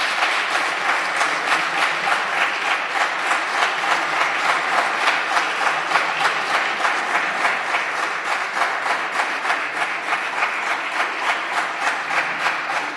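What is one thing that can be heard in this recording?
A crowd claps steadily in a large echoing hall.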